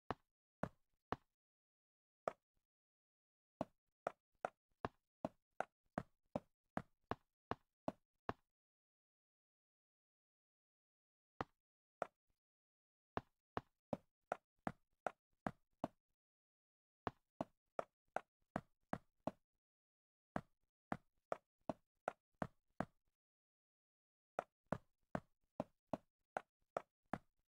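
Leaf blocks break with short rustling pops in quick bursts.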